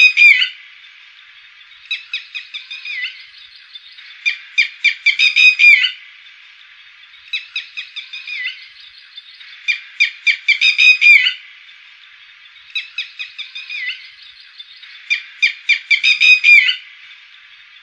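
A lapwing calls loudly in repeated bursts of sharp, shrill notes.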